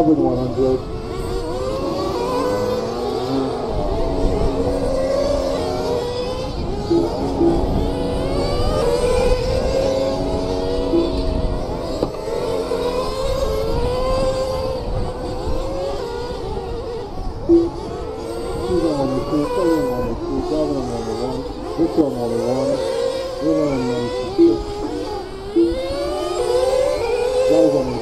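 Small radio-controlled cars whine and rev as they race around.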